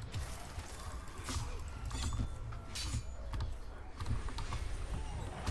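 Monsters grunt and snarl in a fight.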